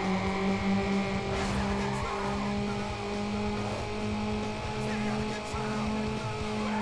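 A racing car engine roars steadily at high speed.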